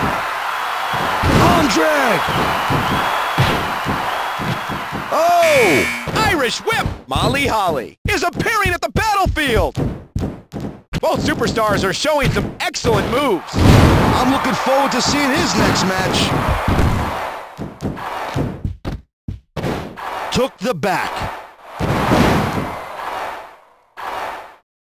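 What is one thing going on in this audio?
A crowd cheers and roars steadily.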